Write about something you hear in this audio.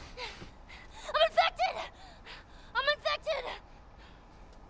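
A young girl screams in panic, shouting repeatedly.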